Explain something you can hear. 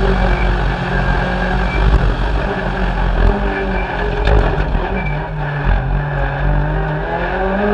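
Tyres crunch and rumble over a gravel road.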